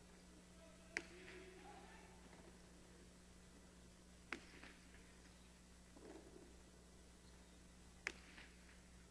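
A hard ball smacks sharply against a wall, echoing in a large hall.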